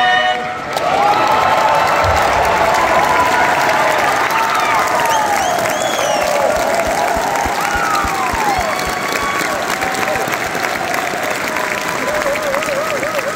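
People in the crowd cheer and whoop.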